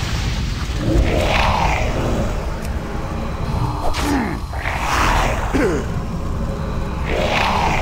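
Magic spells whoosh in short bursts.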